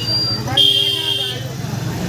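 A motorcycle engine rumbles close by.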